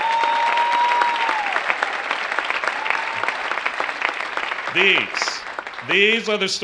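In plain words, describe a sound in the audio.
An audience claps and whistles in a large echoing hall.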